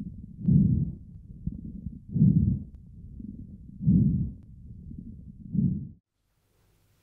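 Breath sounds rise and fall loudly through a stethoscope.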